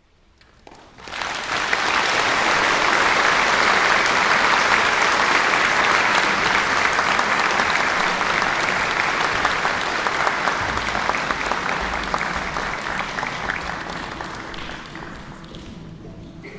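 An audience applauds loudly in a large echoing hall, then the clapping slowly fades.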